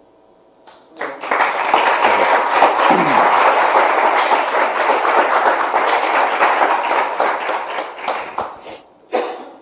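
A small audience claps.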